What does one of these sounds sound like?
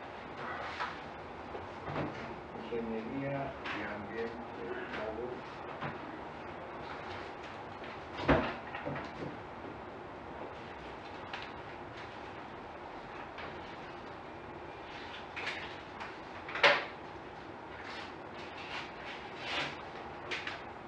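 Adults talk quietly in a room with some echo, heard from across the room.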